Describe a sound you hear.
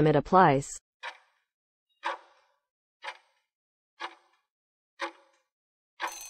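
A countdown timer ticks once each second.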